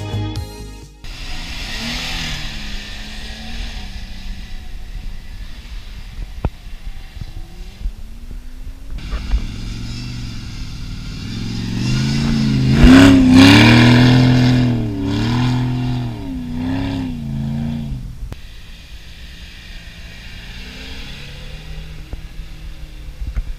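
A vehicle engine roars and revs hard as it climbs.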